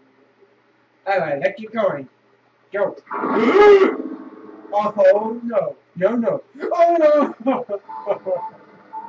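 A young man talks and exclaims with animation into a close microphone.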